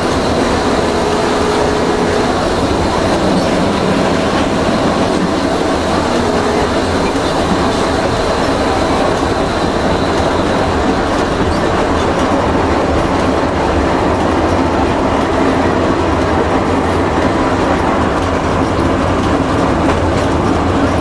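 A train rumbles and clatters steadily along the rails.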